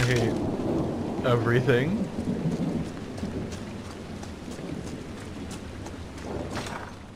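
Footsteps walk on stone.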